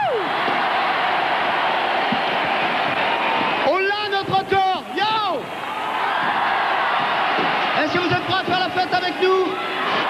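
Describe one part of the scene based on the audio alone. A large crowd cheers and screams loudly in a big hall.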